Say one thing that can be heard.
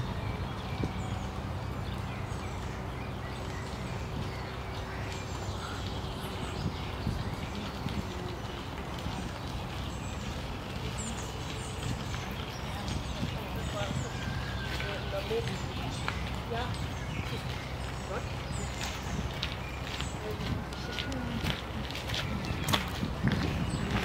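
A squirrel gnaws and crunches on a nut close by.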